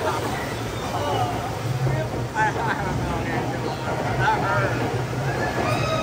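Water rushes and splashes down a chute.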